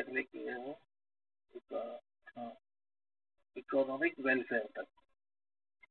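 A man speaks calmly into a microphone, explaining.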